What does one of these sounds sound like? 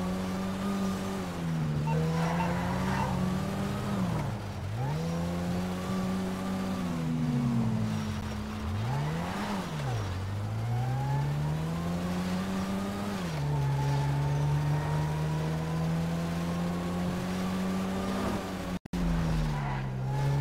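A car engine hums and revs up and down as the car drives along.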